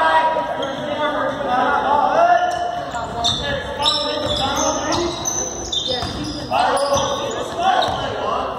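Spectators and players talk and call out in a large echoing gym.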